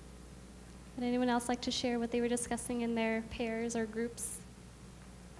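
A young woman speaks calmly through a microphone.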